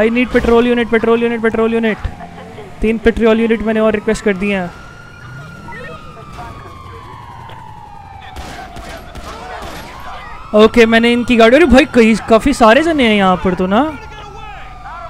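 A police siren wails loudly.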